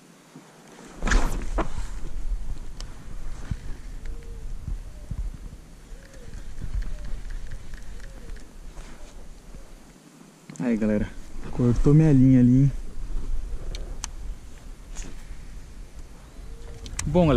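Water laps gently against a small boat.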